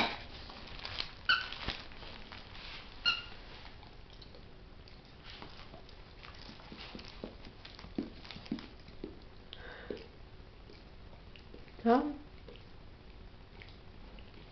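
A dog mouths and chews a plush toy.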